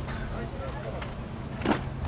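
Plastic crates knock and clatter.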